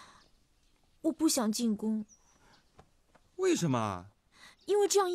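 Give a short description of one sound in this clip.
A young woman speaks softly and sadly close by.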